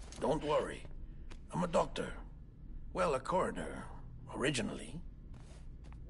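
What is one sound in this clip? A man speaks calmly and reassuringly, close by.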